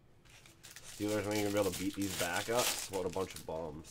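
A foil card pack rips open.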